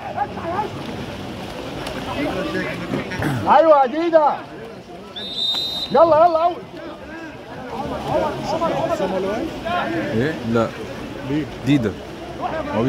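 Men shout loudly from the poolside.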